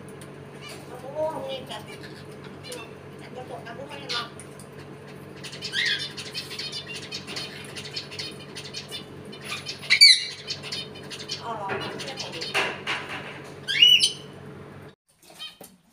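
A parrot whistles and chatters in sharp, rising calls.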